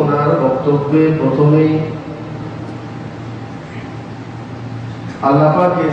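A man speaks slowly and steadily through a microphone, with a slight room echo.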